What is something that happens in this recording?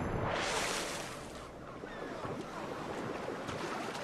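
Water laps and sloshes as a swimmer moves.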